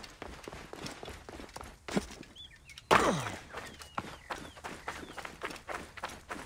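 Footsteps crunch quickly over dry, rocky ground.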